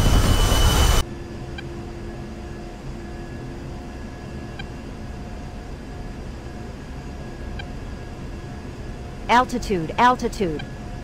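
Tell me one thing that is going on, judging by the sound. A twin-engine turbofan jet hums, muffled, from inside the cockpit.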